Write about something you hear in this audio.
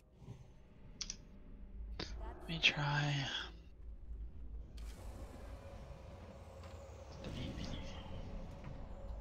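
Magic spells shimmer and crackle in bursts.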